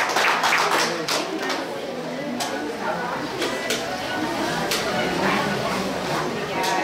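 Several men and women chatter nearby.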